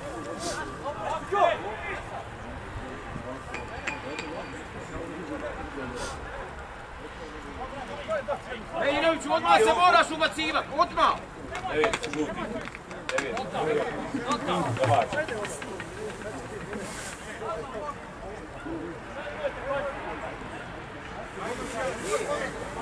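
Young men shout to each other in the distance, outdoors on an open field.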